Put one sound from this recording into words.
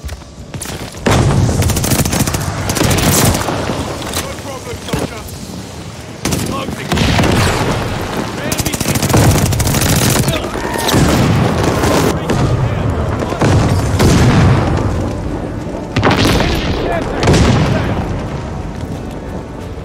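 Gunfire rattles in bursts from a video game.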